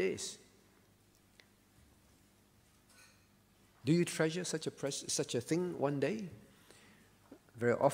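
A man speaks calmly into a microphone with pauses.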